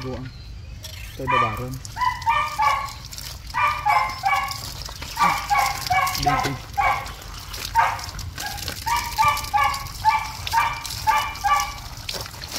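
Water splashes and trickles over a puppy's fur.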